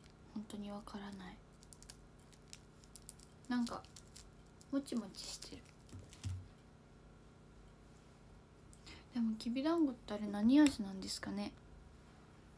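A young woman speaks softly and close by, in short phrases with pauses.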